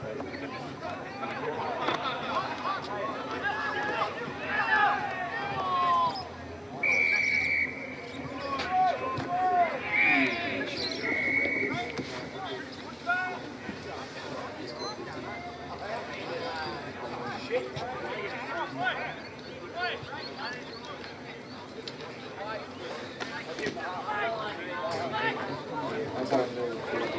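Players shout and call out to each other outdoors.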